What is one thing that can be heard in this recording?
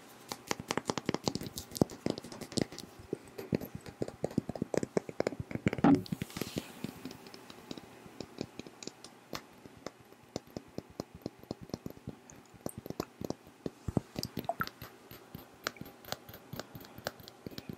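A young woman makes soft mouth sounds close to a microphone.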